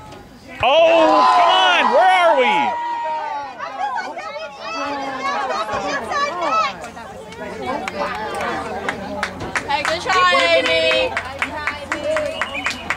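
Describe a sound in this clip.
Young women shout and call out across an open playing field.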